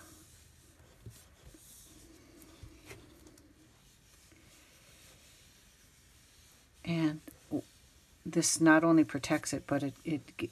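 A hand rubs softly over a sheet of paper.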